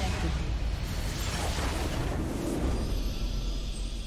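A large structure explodes and crumbles.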